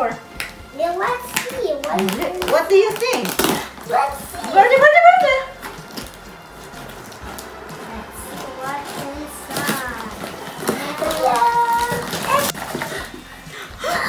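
Young children talk and squeal excitedly close by.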